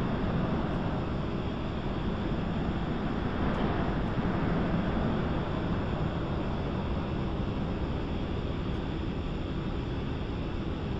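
A jet engine roars steadily as an aircraft taxis.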